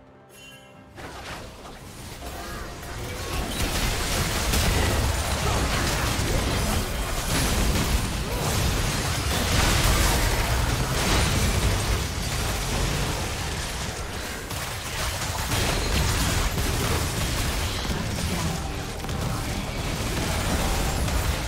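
Spell effects crackle and burst as game characters fight.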